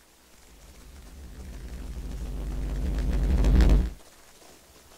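A firework roars, growing steadily louder, then cuts off sharply.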